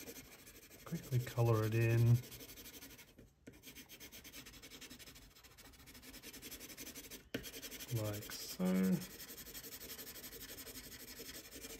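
A pencil scratches quickly on paper.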